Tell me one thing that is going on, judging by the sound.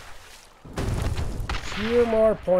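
A fiery blast bursts with a loud, rumbling roar.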